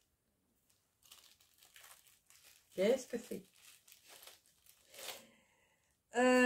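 Plastic wrapping crinkles in a woman's hands.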